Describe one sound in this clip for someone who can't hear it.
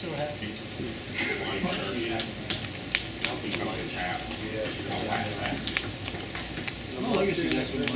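Playing cards riffle and flick as a deck is shuffled by hand.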